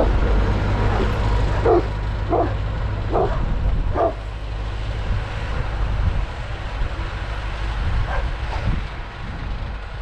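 A tractor engine rumbles and fades as it drives away.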